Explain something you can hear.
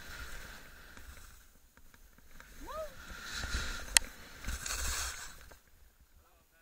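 Skis hiss and scrape through snow.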